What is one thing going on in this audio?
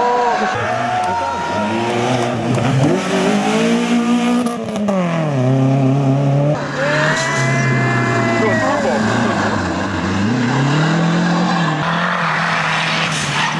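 Rally car engines roar and rev hard, rising and falling in pitch as the cars race past.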